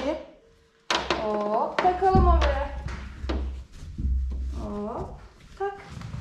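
A young woman speaks encouragingly close by.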